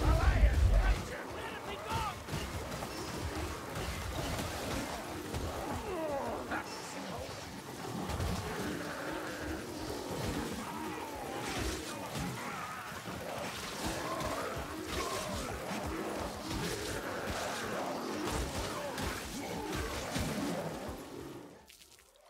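Blades clash and hack against armour and flesh.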